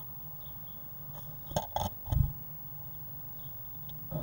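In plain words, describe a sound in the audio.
A blue tit scrabbles in nesting material inside a nest box.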